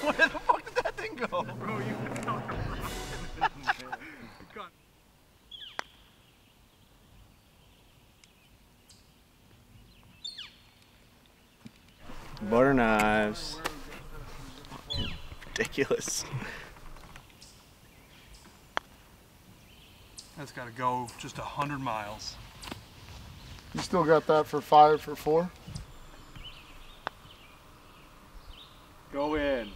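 A putter taps a golf ball.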